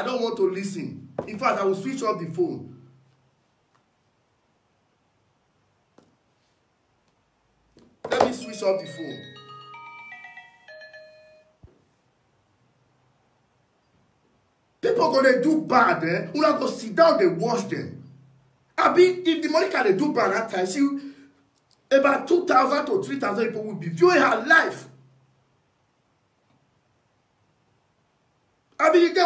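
A man speaks with animation close to a phone microphone, in bursts with pauses.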